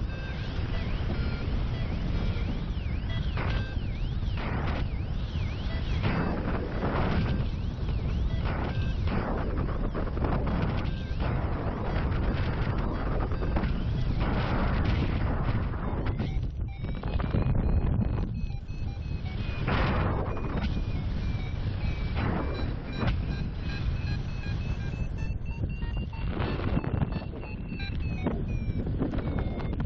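Wind buffets and roars loudly across the microphone high in open air.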